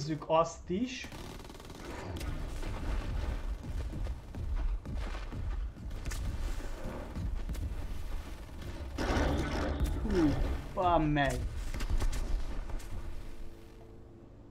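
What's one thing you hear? Gunfire and explosions rumble from a game.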